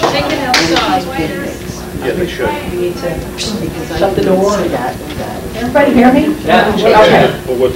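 A woman speaks into a microphone, heard through a loudspeaker in a room.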